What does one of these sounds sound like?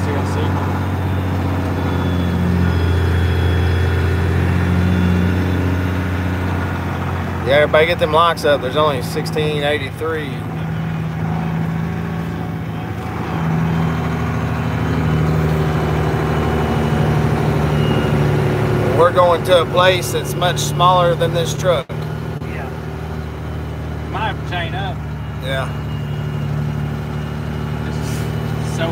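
Tyres crunch over a snowy track.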